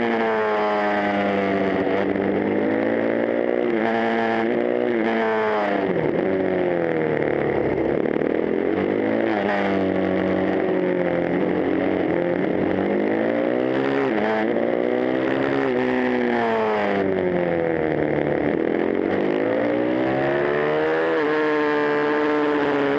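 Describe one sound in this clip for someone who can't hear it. A motorcycle engine roars close by, its pitch rising and falling as the rider shifts gears.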